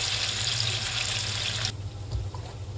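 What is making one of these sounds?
Food sizzles loudly in hot oil.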